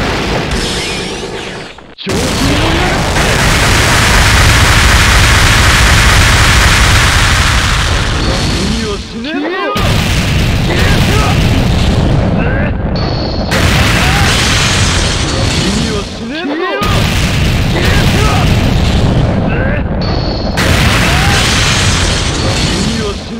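Heavy hits thud and crash.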